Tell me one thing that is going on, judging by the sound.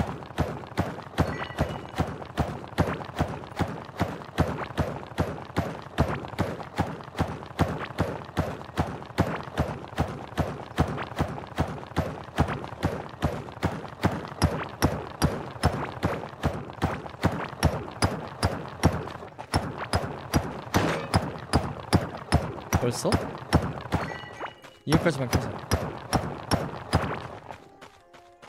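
A pickaxe chips at rock in quick, steady strokes.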